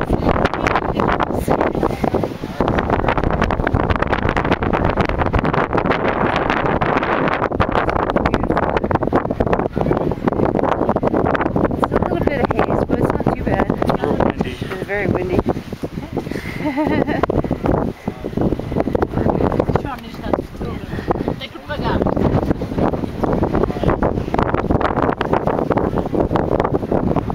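Strong wind roars and buffets across the microphone outdoors.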